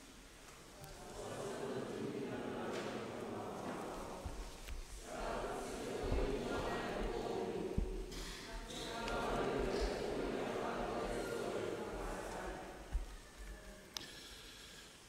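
A crowd of people read aloud together.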